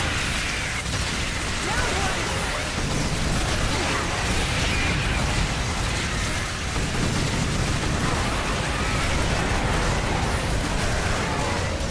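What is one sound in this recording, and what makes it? Rockets fire and explode with loud booms.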